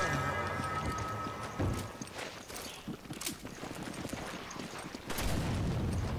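Heavy footsteps thud on hard ground.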